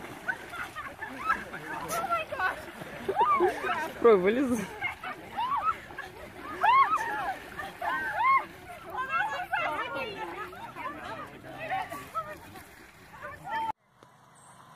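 Children shout and squeal excitedly outdoors.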